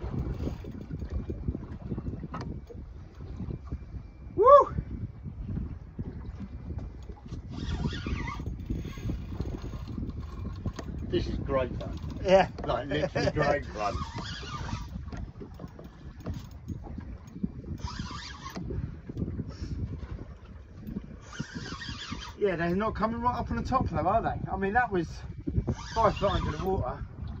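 Waves slap against a small boat's hull.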